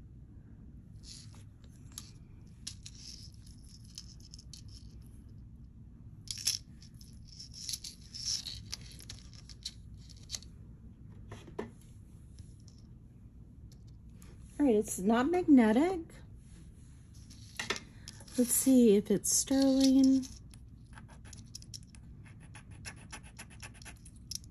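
Metal jewellery chains clink and rattle softly as they are handled.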